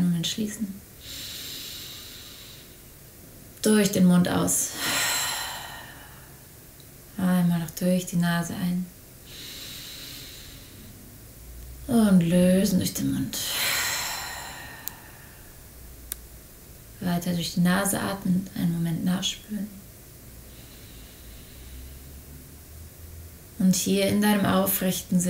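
A young woman speaks slowly and calmly, close to a microphone.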